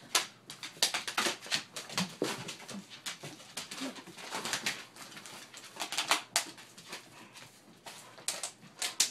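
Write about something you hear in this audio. Dogs scuffle and paw at toys.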